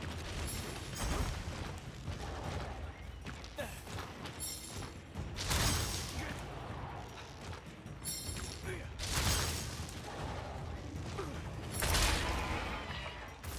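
Huge wings beat with heavy whooshing gusts.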